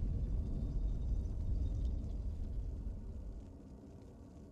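A heavy stone tower rumbles as it turns.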